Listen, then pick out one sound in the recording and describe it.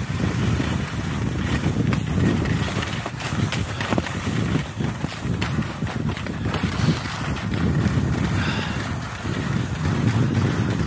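Strong wind gusts and buffets against a microphone outdoors.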